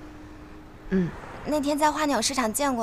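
A second young woman answers softly close by.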